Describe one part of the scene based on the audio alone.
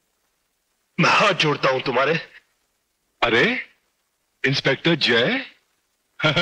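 A man talks over a phone, heard close.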